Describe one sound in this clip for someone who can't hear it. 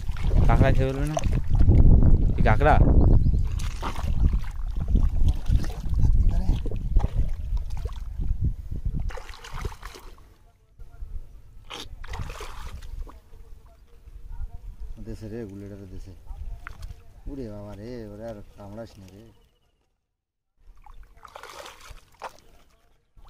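Hands squelch and dig through wet mud.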